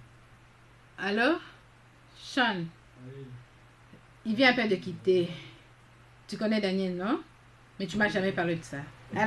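A young woman speaks into a phone in an upset tone.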